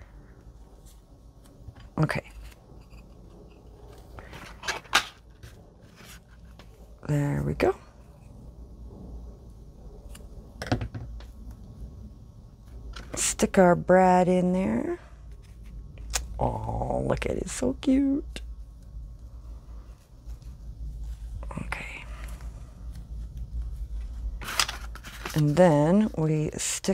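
Paper flowers rustle and crinkle softly in someone's hands.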